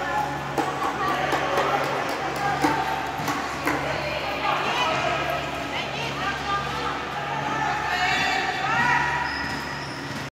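Young women call out and chatter in a large echoing hall.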